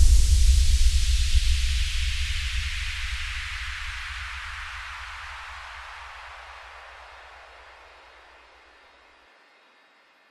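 Electronic music with a deep bass slowly fades out.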